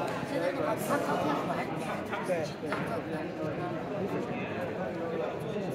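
A ping pong ball clicks against paddles and the table.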